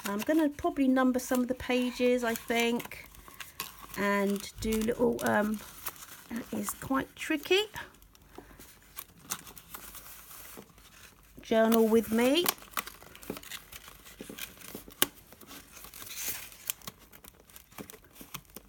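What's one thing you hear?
Paper pages rustle and flip as they are turned.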